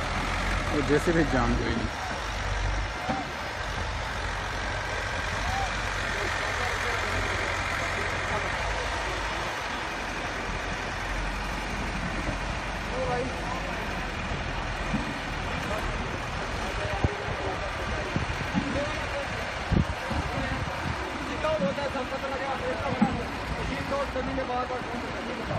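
A backhoe loader's diesel engine rumbles steadily nearby.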